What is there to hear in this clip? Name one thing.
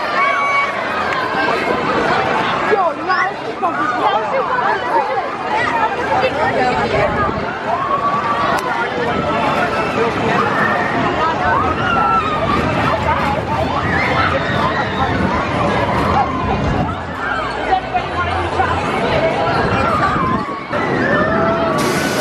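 Children on a ride shriek and shout with excitement.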